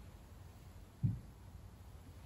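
A metal cup is set down on a table with a soft knock.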